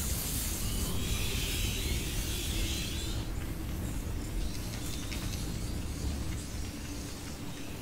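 A fire crackles and hisses nearby.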